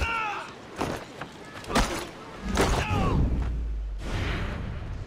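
Blades clash and thud in a fight.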